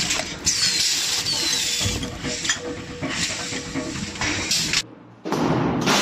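Metal balls rattle and clatter in a machine.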